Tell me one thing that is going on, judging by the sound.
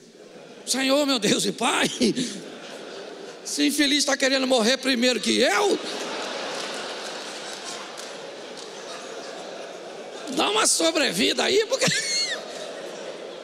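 A man speaks into a microphone with animation, heard over loudspeakers in a large hall.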